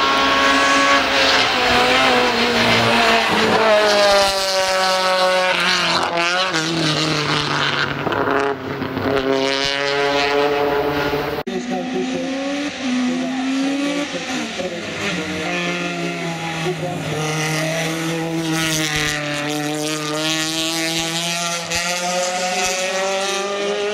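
A rally car engine roars and revs hard, rising and falling as the car speeds past.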